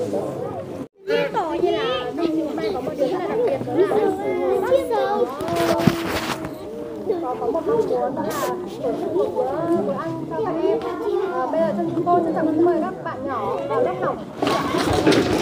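A young woman speaks clearly, as if to a gathering.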